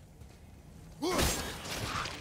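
A magical burst whooshes and crackles loudly.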